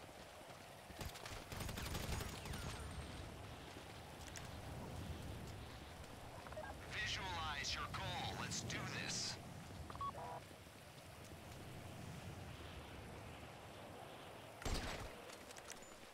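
Gunshots crack and echo.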